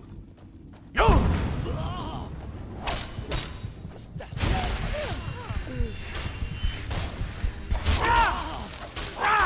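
Flames whoosh and roar in bursts.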